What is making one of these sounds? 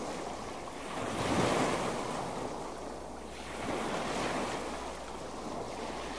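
Small waves lap gently against the shore.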